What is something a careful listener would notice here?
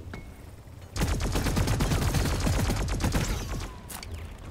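A rapid-fire gun shoots in a long burst.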